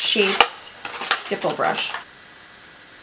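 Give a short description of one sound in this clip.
A young woman talks calmly, close to a microphone.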